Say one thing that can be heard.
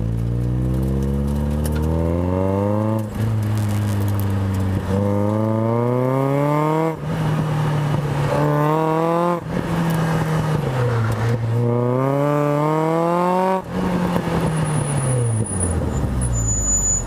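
A car engine revs hard and shifts up and down through the gears, heard from inside the car.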